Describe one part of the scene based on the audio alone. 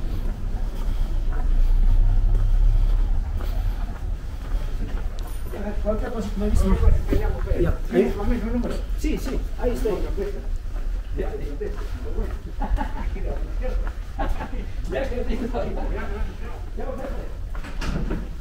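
Footsteps tap on a stone path.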